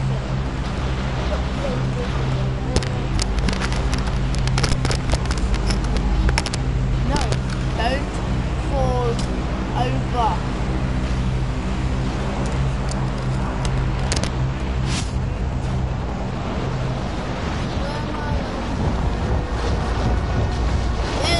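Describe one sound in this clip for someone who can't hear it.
A plane's engine drones steadily as it glides through the air.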